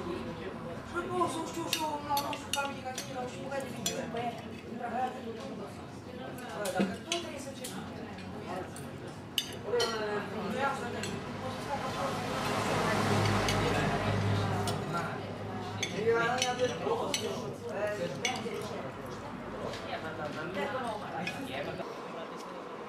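Cutlery clinks and scrapes against plates.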